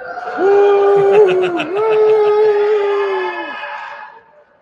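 A man sings a long, loud held note over an online call.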